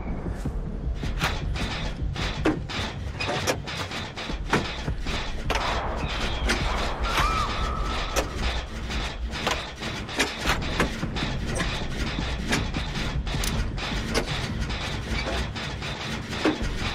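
Metal parts of an engine clank and rattle as it is being repaired.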